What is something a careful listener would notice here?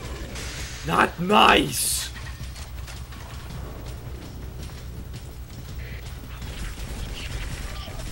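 An energy rifle fires sharp bursts.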